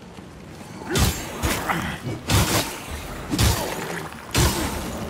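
Heavy sword blows strike with loud thuds.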